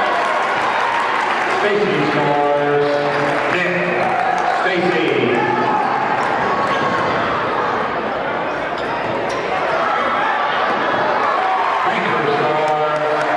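A crowd cheers and chatters loudly in a large echoing gym.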